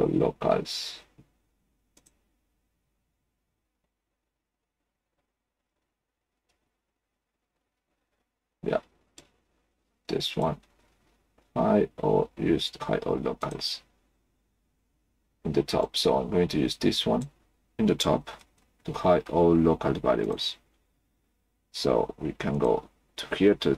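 A man talks calmly and close into a microphone, with pauses.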